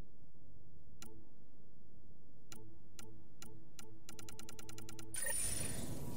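Short electronic menu beeps click one after another, then rattle quickly.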